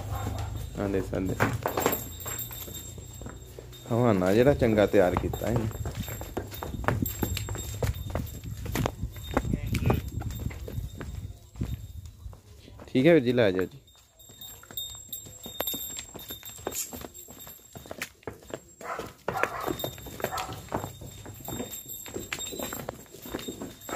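Cow hooves thud and scuff on dry dirt ground.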